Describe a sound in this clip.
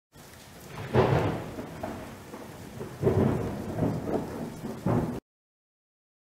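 Thunder rumbles and crashes loudly.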